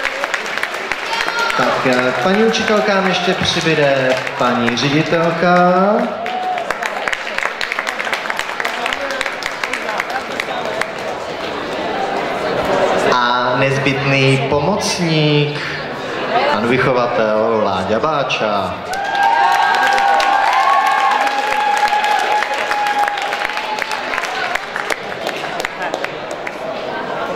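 A large crowd murmurs and chatters in a large hall.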